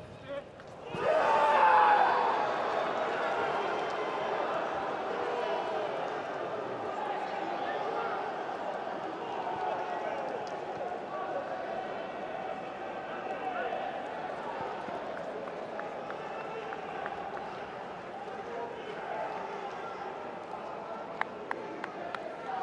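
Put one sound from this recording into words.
Young men shout and cheer excitedly in celebration.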